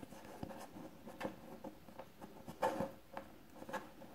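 Small metal pieces click softly against a wooden tabletop.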